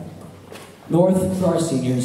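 A young man speaks through a microphone and loudspeakers.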